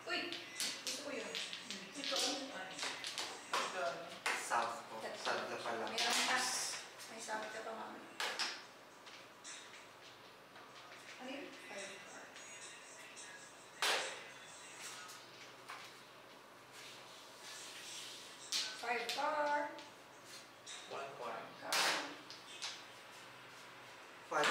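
Mahjong tiles clack and click against each other and the table.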